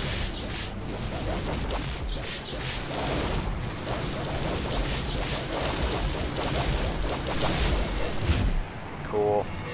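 Explosions rumble and crackle in a loud battle.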